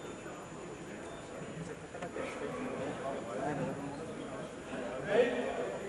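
A crowd of spectators murmurs and talks.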